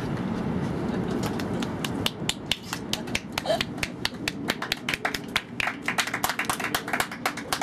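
A small crowd claps and applauds outdoors.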